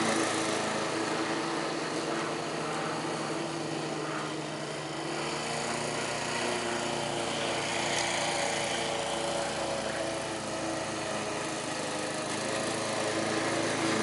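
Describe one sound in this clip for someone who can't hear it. A lawn mower engine drones steadily at a distance.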